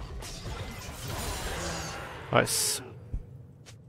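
Fighting game sound effects burst and crackle.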